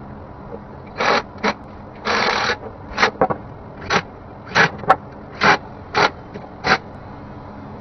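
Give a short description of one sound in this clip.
A cordless impact wrench whirs in short bursts.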